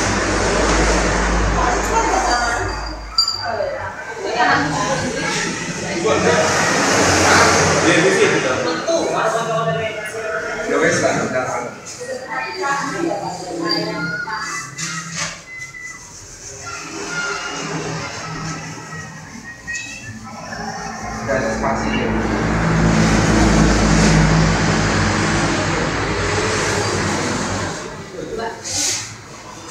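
An electric fan hums and whirs steadily.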